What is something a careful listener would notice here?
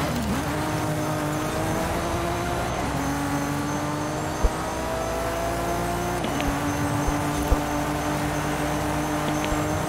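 A sports car engine roars at high revs, rising in pitch and dropping with each gear change.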